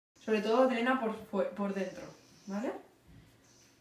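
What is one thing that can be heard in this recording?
A young woman speaks softly and warmly close by.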